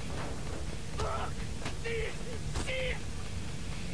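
A man curses loudly.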